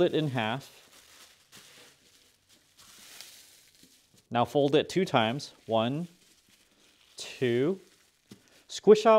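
A plastic bag crinkles and rustles as it is folded.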